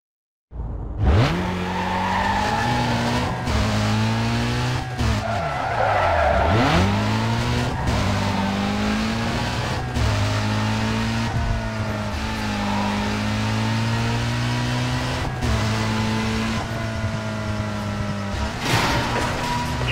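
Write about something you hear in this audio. A car engine revs hard and roars, rising and falling as gears shift.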